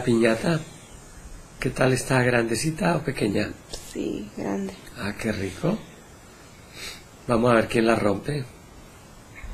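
A young woman speaks haltingly in short phrases, close to a microphone.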